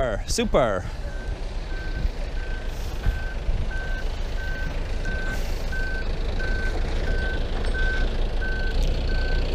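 A forklift beeps steadily as it moves.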